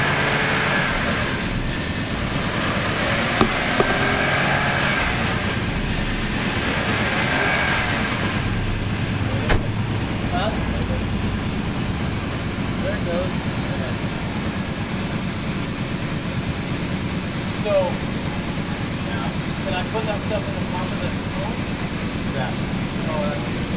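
A pump machine hums steadily nearby.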